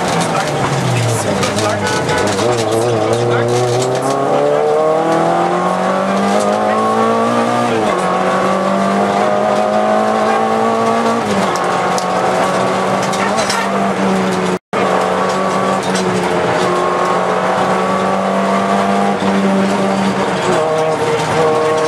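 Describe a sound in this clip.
Tyres rumble over a rough country road.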